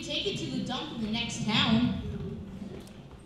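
Children talk and call out with animation in a large hall.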